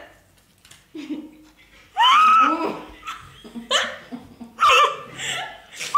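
A woman squeals and laughs loudly close by.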